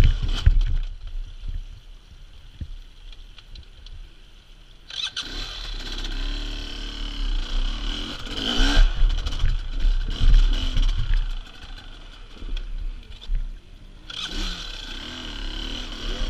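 A dirt bike engine revs and idles close by.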